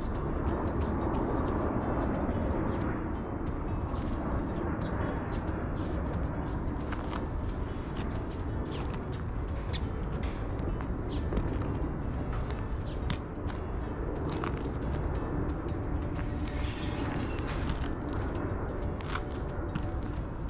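Wheels roll steadily over a gritty path.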